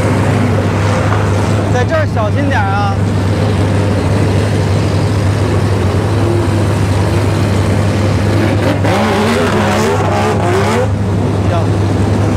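A race car drives slowly past with a low engine growl.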